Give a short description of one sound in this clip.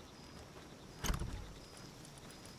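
A dull thump sounds as a menu opens.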